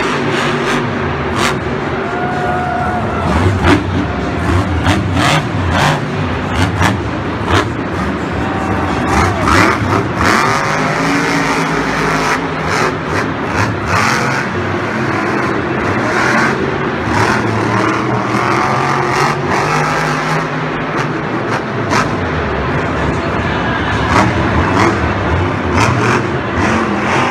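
A monster truck engine roars and revs loudly.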